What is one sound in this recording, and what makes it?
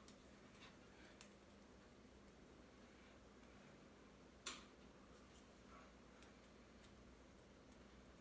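Scissors snip through thin material.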